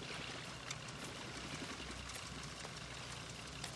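Water splashes and ripples as an animal swims through a river.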